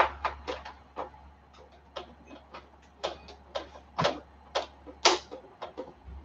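Items knock and clatter as a man handles them.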